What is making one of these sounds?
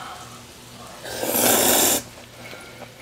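A young woman slurps noodles loudly.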